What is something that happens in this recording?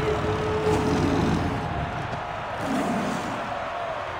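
A lion roars loudly.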